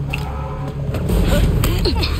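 A fist strikes a body with a heavy thud.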